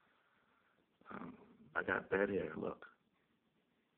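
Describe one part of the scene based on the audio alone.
A man speaks close to a phone's microphone.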